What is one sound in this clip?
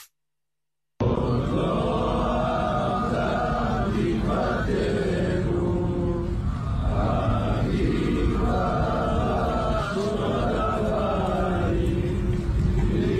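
A large group of men sings together outdoors.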